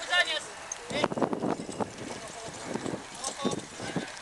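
Horses' hooves thud on the ground.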